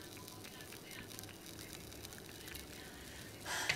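A spatula scrapes and taps in a frying pan.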